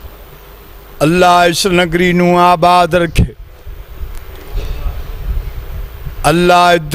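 A middle-aged man speaks through a microphone, reciting in a loud, drawn-out, sung tone.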